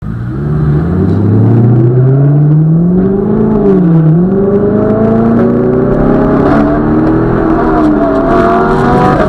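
A car engine revs hard, its pitch climbing and dropping with each gear change.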